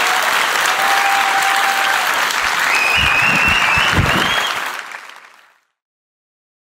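A large audience applauds in a big hall, then the applause fades away.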